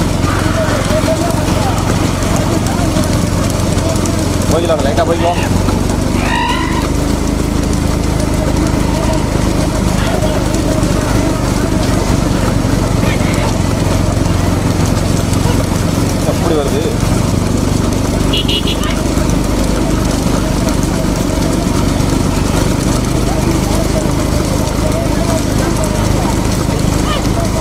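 Cart wheels rumble and rattle on the road.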